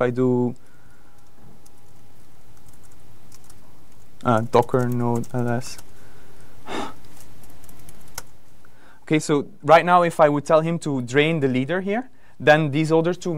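A young man speaks through a microphone, pausing between phrases.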